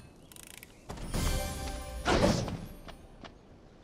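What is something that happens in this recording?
A magical burst whooshes loudly.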